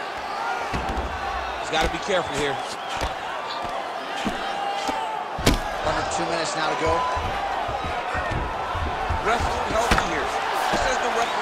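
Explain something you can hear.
Punches thud repeatedly against a body.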